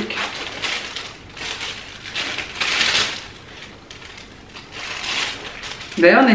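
Paper rustles and crinkles in someone's hands.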